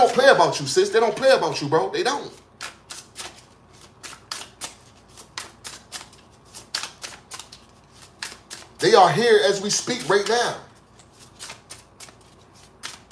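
Playing cards are shuffled by hand, with quick soft slaps.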